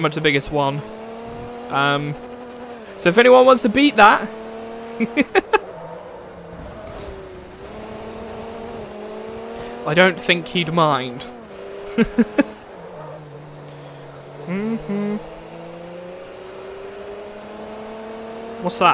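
A race car engine whines loudly, its pitch rising and dropping as it shifts gears.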